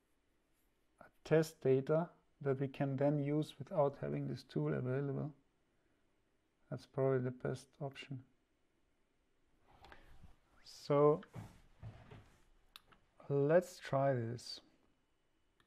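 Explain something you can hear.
A young man speaks calmly and close to a microphone, with pauses.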